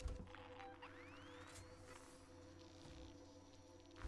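A motion tracker beeps and pings.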